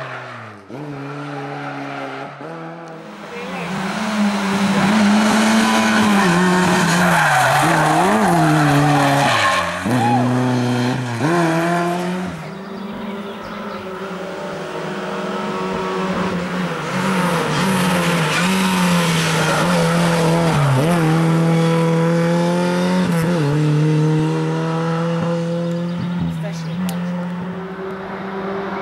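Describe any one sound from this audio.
A rally car engine roars loudly and revs up and down as the car speeds through bends.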